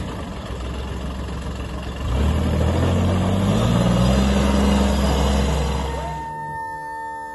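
Tyres roll over rough gravel.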